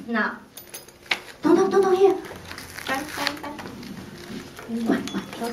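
A woman talks gently to small children nearby.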